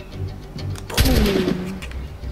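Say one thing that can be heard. A musket fires with a loud bang.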